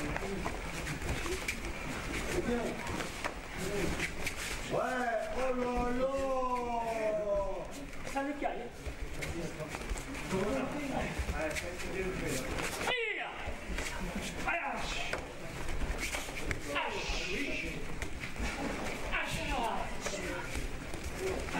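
A man speaks nearby in a calm, steady voice.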